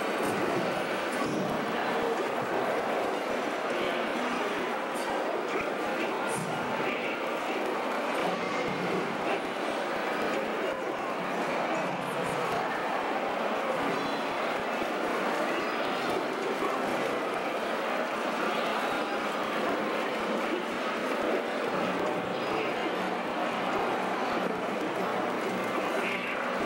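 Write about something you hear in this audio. Video game sound effects play from a television.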